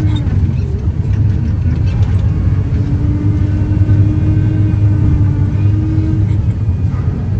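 A heavy diesel engine rumbles loudly and steadily close by.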